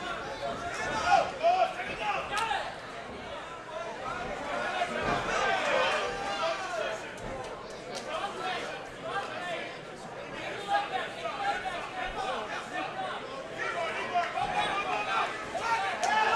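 A crowd cheers and shouts loudly in a large hall.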